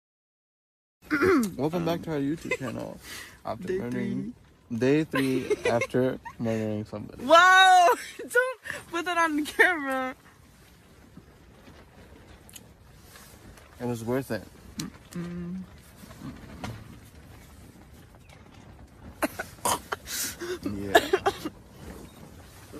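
A young woman talks and laughs close to a phone microphone.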